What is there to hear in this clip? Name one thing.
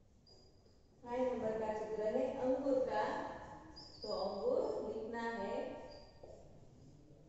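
A woman speaks calmly, close by, as if teaching.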